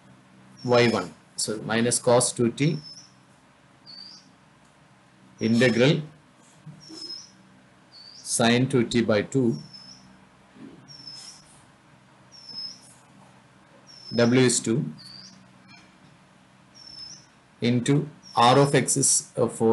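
A man speaks calmly through a microphone in short bursts.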